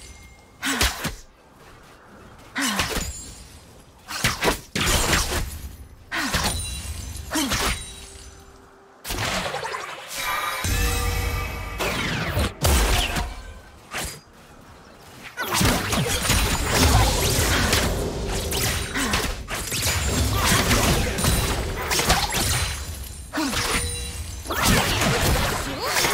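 Sword strikes and blasts clash in quick bursts.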